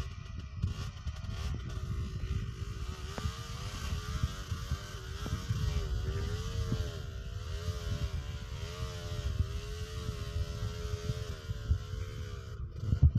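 A two-stroke dirt bike engine revs hard.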